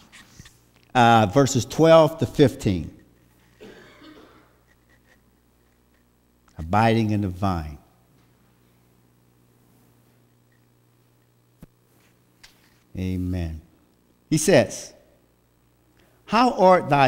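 A man speaks slowly and calmly through a microphone in a large echoing room, with long pauses.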